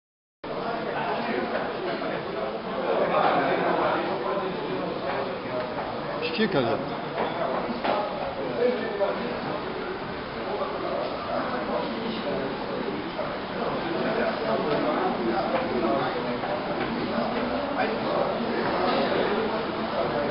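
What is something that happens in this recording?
Several adults chat nearby.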